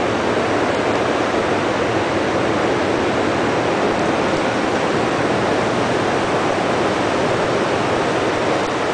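A machine runs nearby with a loud, steady roar.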